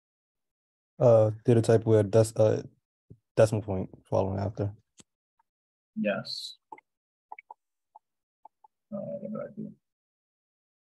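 A man speaks calmly into a microphone, close up.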